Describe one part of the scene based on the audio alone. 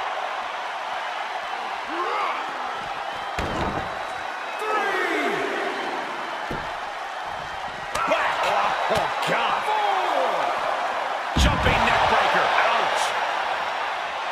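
A crowd cheers loudly throughout.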